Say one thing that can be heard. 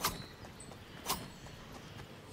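A large blade swings through the air with a whoosh.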